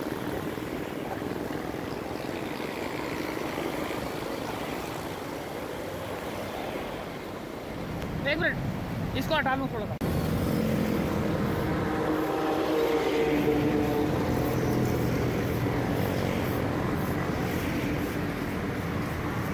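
A metal cart rattles as it is pushed along the road.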